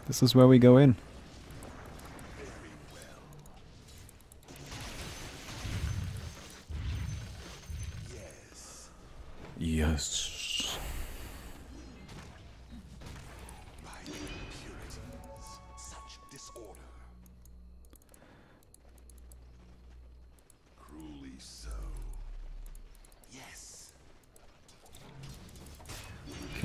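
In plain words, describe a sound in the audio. Magical blasts and whooshes from a game sound in bursts.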